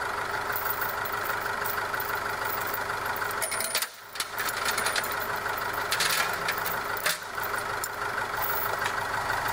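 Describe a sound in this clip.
A metal chain clinks and rattles.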